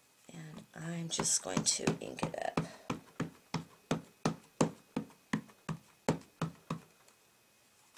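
An ink pad taps quickly and repeatedly on a rubber stamp.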